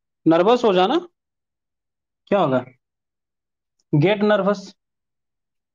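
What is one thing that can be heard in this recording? A young man speaks clearly and closely in short phrases.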